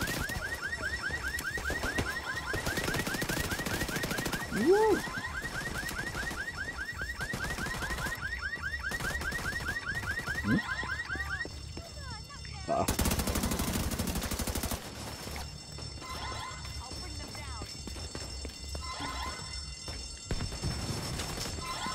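Footsteps run over pavement.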